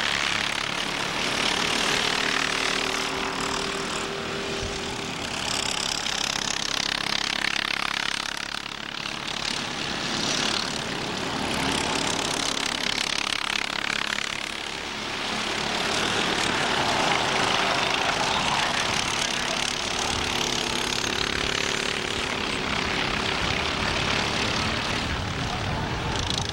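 Kart engines buzz and whine as they race past, rising and falling.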